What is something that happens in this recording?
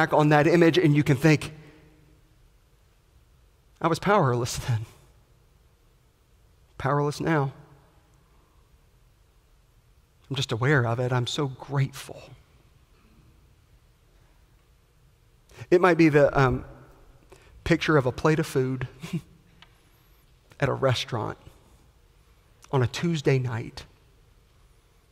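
A man preaches with animation through a microphone, in bursts with pauses, in a large echoing hall.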